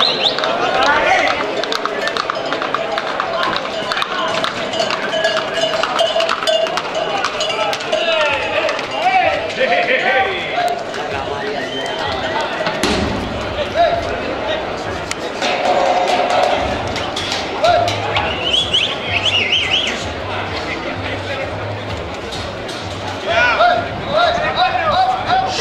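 A crowd of men and women shouts and whistles with excitement outdoors.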